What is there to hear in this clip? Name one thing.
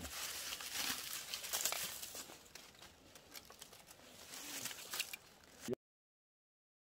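Dry leaves and twigs crunch underfoot.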